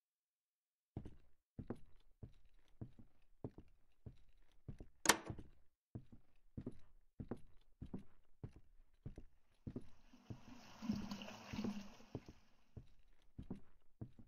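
Footsteps thud steadily on wooden stairs and floorboards.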